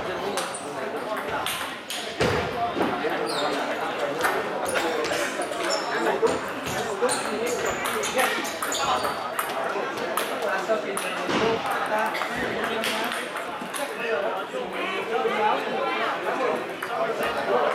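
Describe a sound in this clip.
Ping pong balls click sharply against paddles and tables in a large echoing hall.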